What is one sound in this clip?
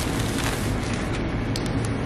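Tape tears off a dispenser.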